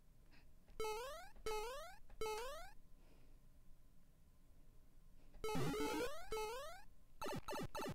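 Short electronic jump sounds rise quickly, one after another.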